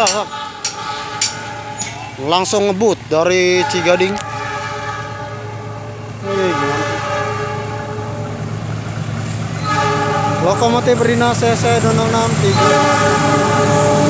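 A train horn blares several times, drawing nearer.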